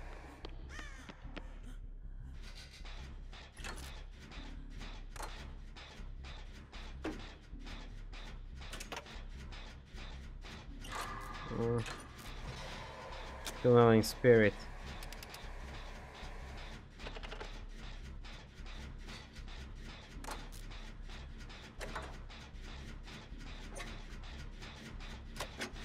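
A machine rattles and clanks as it is repaired.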